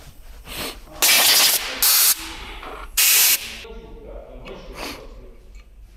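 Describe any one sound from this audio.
Compressed air hisses in short, loud blasts from an air gun.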